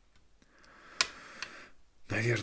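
Small plastic toy pieces click and tap together.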